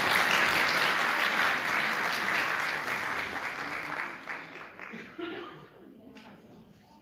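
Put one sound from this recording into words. An audience applauds in a large hall, and the clapping slowly dies away.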